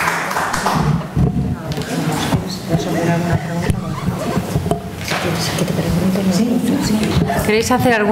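A woman speaks into a microphone from a table.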